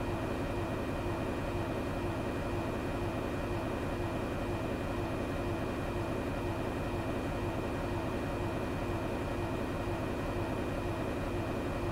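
The jet engines of a twin-engine airliner drone steadily while it climbs, heard from the cockpit.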